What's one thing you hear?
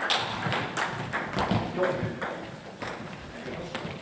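Table tennis balls bounce on a hard floor.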